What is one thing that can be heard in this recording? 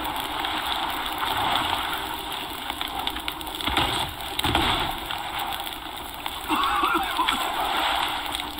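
Ocean waves surge and wash steadily.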